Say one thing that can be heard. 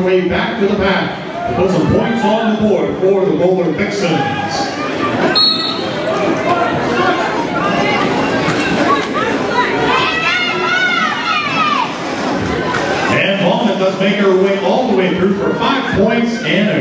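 A crowd of women and men talk and shout all around in a large echoing hall.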